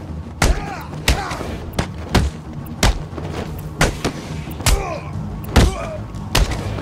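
Heavy punches land with sharp thuds in quick succession.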